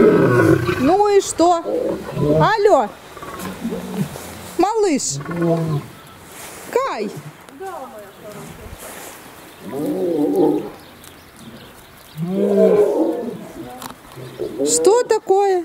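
Lions grunt and moan close by, in short rising and falling calls.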